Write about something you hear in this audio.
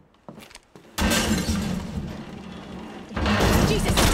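A heavy crash of breaking walls and falling rubble booms loudly.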